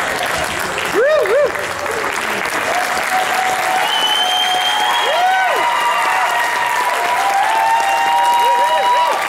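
Young people in a crowd whoop and cheer loudly.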